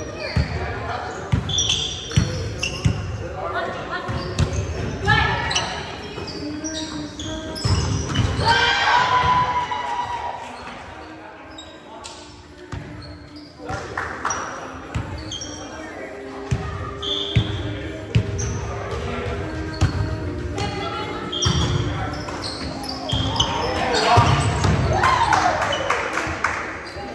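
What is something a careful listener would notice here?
A volleyball is hit back and forth with sharp thuds.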